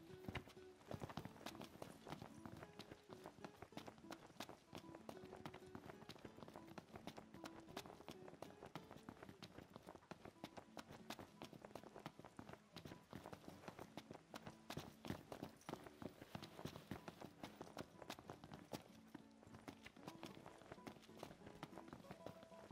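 Quick footsteps run on stone paving.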